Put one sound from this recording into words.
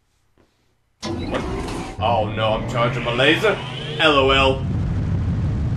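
A man's cartoonish voice shrieks loudly.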